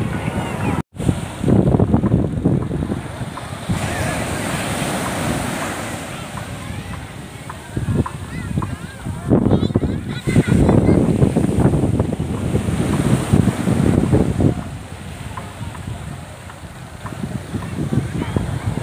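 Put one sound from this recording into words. Waves break and wash onto the shore.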